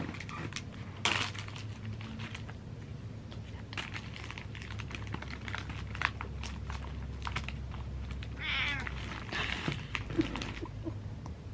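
A bag crinkles in a hand.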